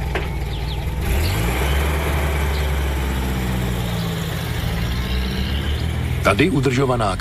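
A van drives past close by, its engine rumbling louder and then fading.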